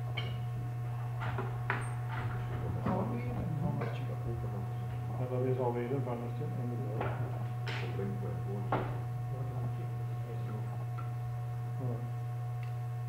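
An elderly man talks calmly, close by.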